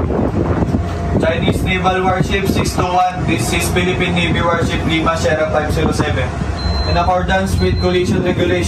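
A man speaks loudly through a megaphone.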